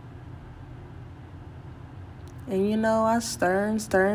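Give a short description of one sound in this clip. A spoon scrapes and stirs food in a pot.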